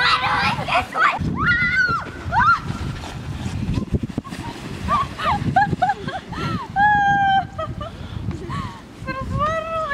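Young children squeal and shout excitedly close by.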